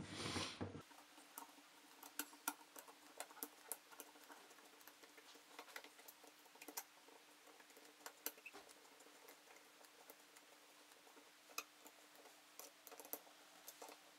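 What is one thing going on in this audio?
A screwdriver scrapes and clicks as it turns a small screw in metal.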